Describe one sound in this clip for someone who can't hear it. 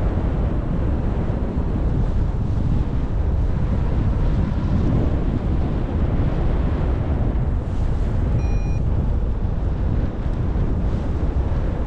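Wind buffets loudly outdoors, rushing steadily throughout.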